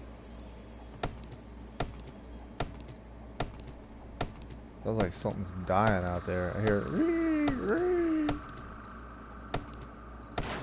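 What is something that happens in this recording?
An axe chops into a tree trunk with regular, sharp thuds.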